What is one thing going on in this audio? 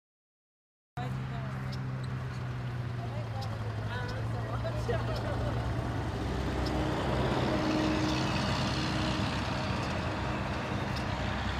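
A golf cart's electric motor hums as it drives over grass.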